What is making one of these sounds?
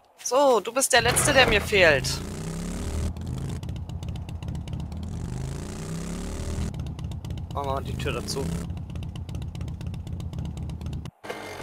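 A motorbike engine runs and revs steadily.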